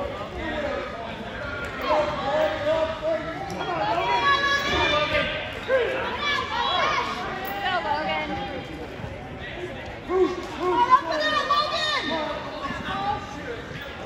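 Spectators shout and cheer with excitement in a large echoing gym.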